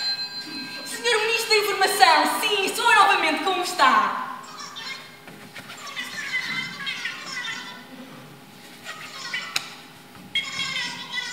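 A young girl speaks with animation in an echoing hall.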